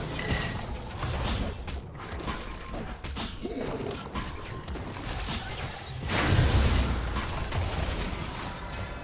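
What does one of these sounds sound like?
Game spell effects whoosh and crackle in bursts.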